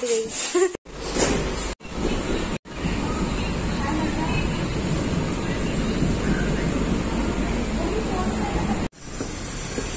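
A train rumbles along the tracks.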